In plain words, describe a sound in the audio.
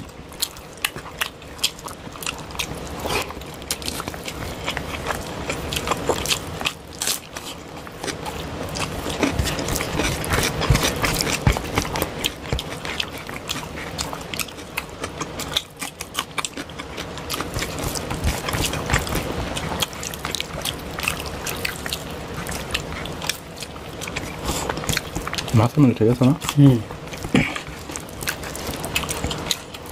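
Fingers squish and mix wet rice with close, sticky squelches.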